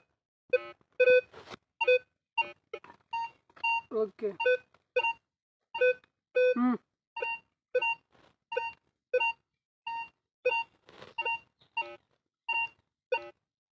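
A metal detector beeps in short pitched tones, again and again.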